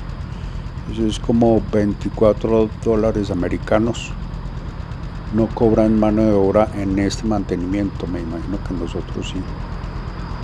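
A man talks close to the microphone, with animation.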